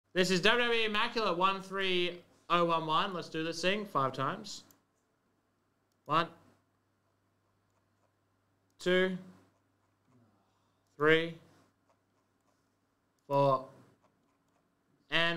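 A young man speaks with animation into a close microphone, in short bursts with pauses.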